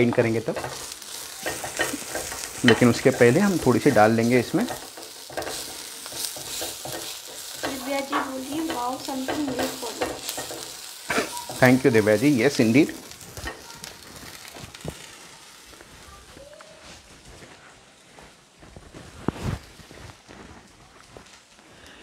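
Vegetables sizzle softly in a hot pan.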